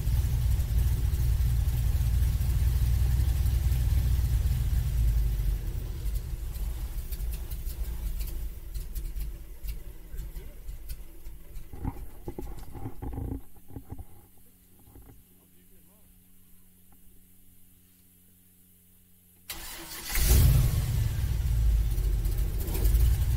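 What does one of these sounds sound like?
An airboat's engine and propeller roar loudly, fading down for a while before roaring up again.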